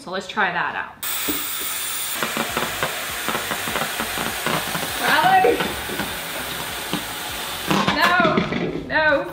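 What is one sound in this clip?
Gas hisses steadily from a tank into a balloon.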